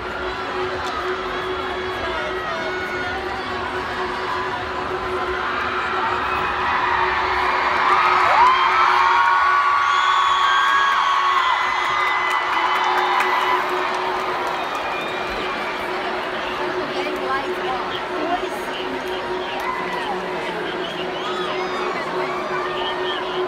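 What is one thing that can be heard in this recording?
A large crowd cheers and whistles in a big echoing arena, swelling louder for a while and then settling.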